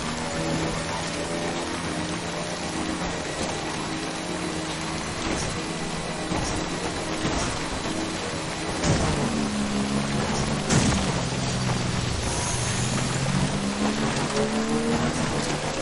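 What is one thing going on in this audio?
A motorbike engine hums, its pitch rising and falling as it rides over rough ground.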